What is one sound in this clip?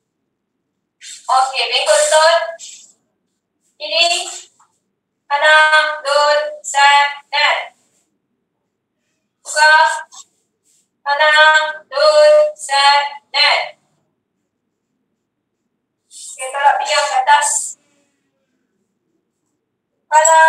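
A woman gives calm instructions over an online call, in short phrases with pauses.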